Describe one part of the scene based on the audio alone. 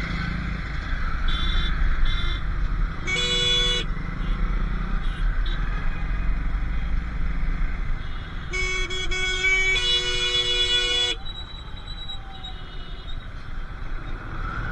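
A motorcycle engine hums steadily while riding in traffic.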